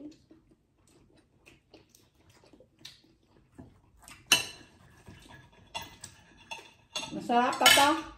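Knives and forks scrape and clink on plates.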